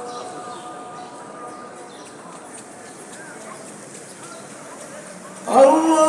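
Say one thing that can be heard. A large crowd murmurs softly outdoors.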